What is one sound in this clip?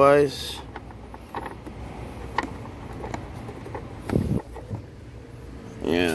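A plastic clip clicks into place.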